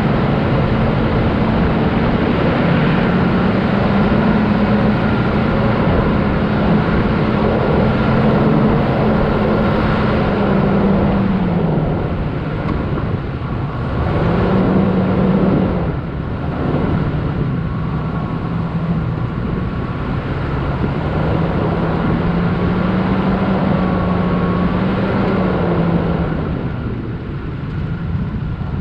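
A vehicle engine hums and revs steadily while driving.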